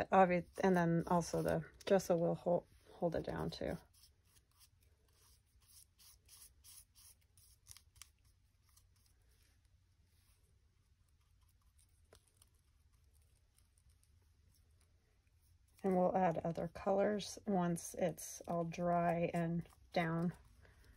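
A brush dabs and scrapes softly on paper.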